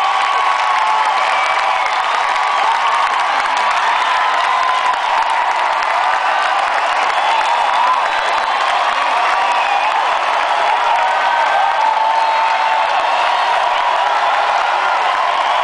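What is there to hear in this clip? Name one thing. A rock band plays loudly through a booming sound system, heard from far back in a large echoing hall.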